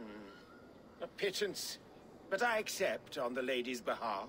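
A middle-aged man speaks gruffly and reluctantly.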